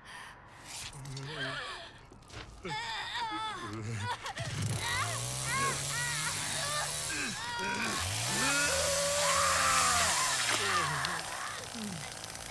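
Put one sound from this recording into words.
A young woman screams in terror.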